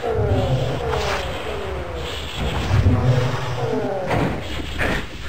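Creatures let out screeching cries that fall in pitch.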